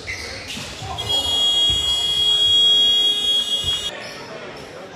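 A loud buzzer sounds steadily and then stops.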